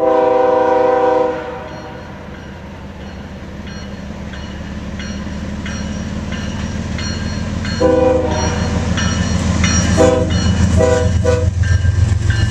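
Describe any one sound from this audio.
A train horn blows loudly in several long blasts.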